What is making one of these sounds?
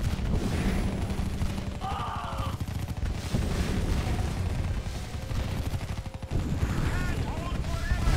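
A rocket launches with a whoosh.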